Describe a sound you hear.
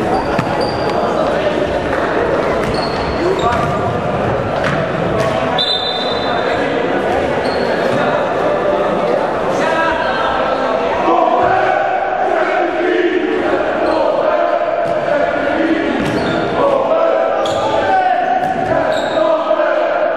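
Young men shout to each other in an echoing hall.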